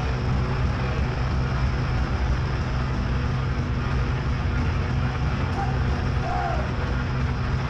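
Drums pound steadily.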